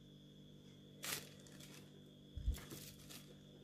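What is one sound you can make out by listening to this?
Tissue paper rustles briefly.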